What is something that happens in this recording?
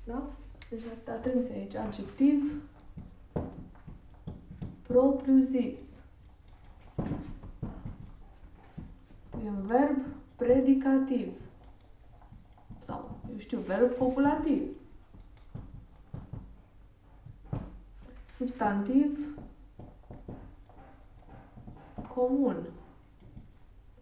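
A young woman speaks calmly and clearly, close by, pausing as she writes.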